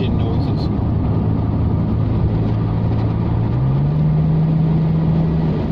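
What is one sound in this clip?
A car engine hums steadily from inside the cabin and rises in pitch as it speeds up.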